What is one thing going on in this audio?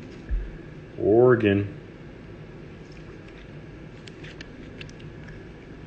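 A trading card slides into a stiff plastic holder with a soft scraping click.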